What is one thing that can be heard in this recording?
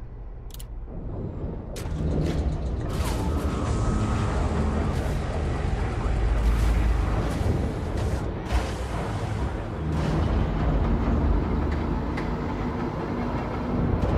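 A spaceship's engines rumble with a deep, steady hum.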